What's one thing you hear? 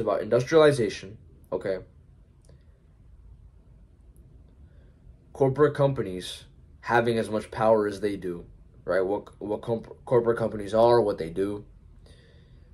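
A young man speaks calmly and close to the microphone, in short bursts with pauses.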